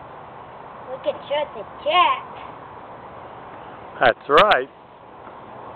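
A young boy calls out loudly nearby.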